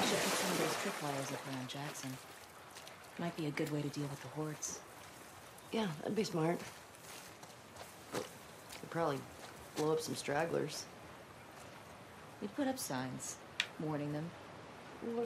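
A second young woman replies in a relaxed voice.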